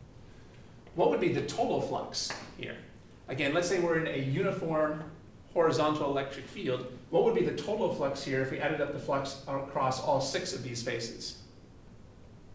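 A man lectures clearly and with animation, close to a microphone.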